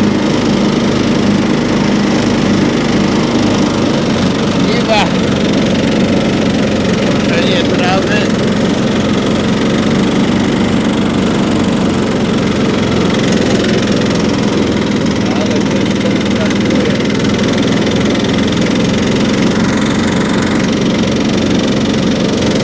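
A riding lawn mower engine drones loudly and steadily up close.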